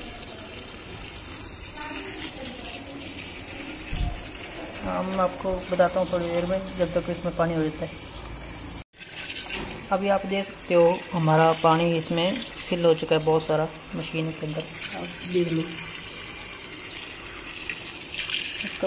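A stick stirs wet laundry, swishing through water.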